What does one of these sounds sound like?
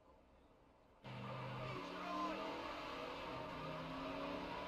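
A car engine roars loudly as the car speeds off.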